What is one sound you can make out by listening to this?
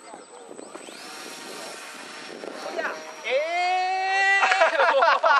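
A model plane's electric motor whines at a high pitch.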